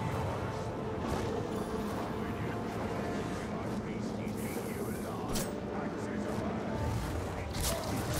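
Fire explodes and crackles on the ground below.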